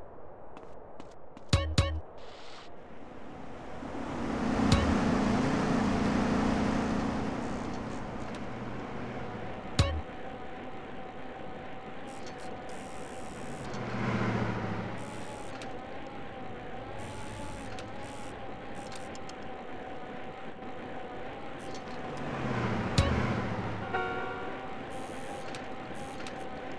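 A bicycle chain whirs steadily as someone pedals.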